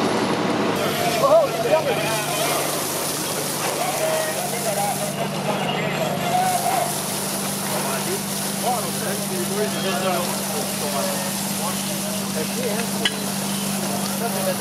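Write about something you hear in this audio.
Men talk loudly nearby outdoors.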